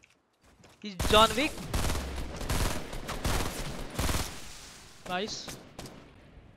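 Gunshots crack in quick succession.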